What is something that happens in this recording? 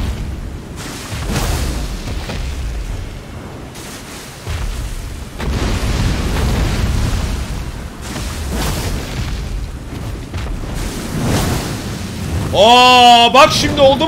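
Heavy blows thud during a fight.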